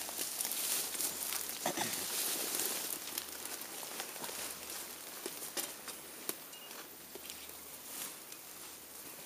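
A gorilla rustles through leafy undergrowth.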